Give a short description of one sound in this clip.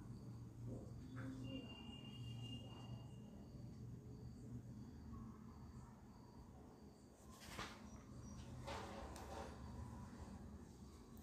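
Fabric rustles and crinkles as hands handle it.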